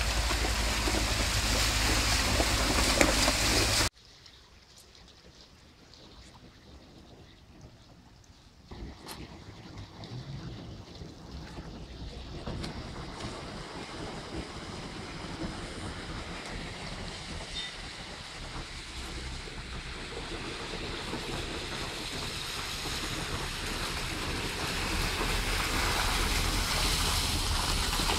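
Shallow water runs and ripples along a street.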